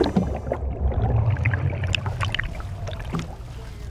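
Water sloshes and bubbles underwater.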